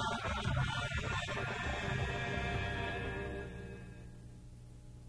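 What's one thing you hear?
Sheep bleat.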